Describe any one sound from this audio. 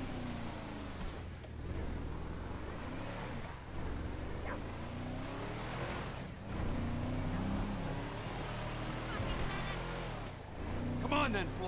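A pickup truck engine rumbles steadily as the truck drives along a road.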